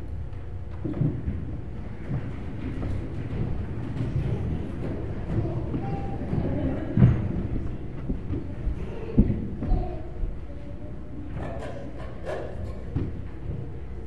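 People shuffle and stand up from wooden pews with soft knocks.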